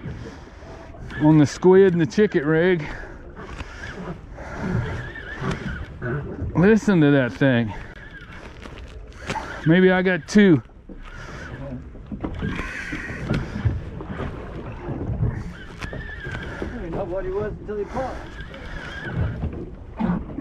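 Wind blows across open water.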